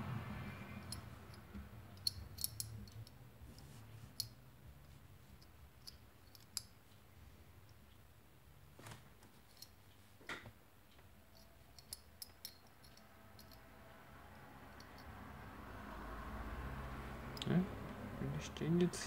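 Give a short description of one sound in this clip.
Small metal puzzle pieces click and clink together in a person's hands.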